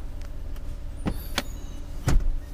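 A seat latch clicks open.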